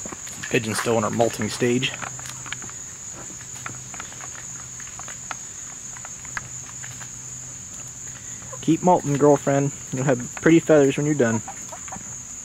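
Hens cluck and squawk loudly nearby.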